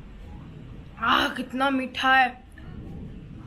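A young woman hums with pleasure close by.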